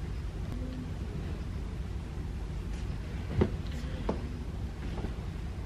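A heavy blanket rustles and whooshes as it is shaken out.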